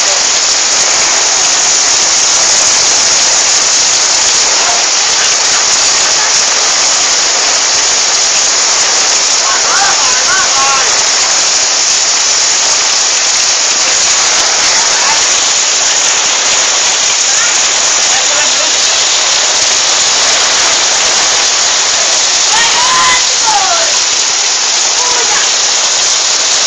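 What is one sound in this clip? Floodwater rushes and splashes through a street.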